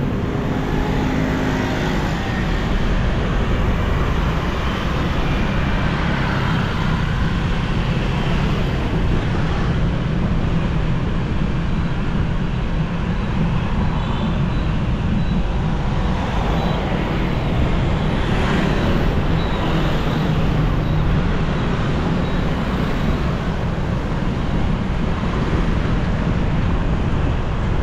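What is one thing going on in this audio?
Wind rumbles loudly past the rider.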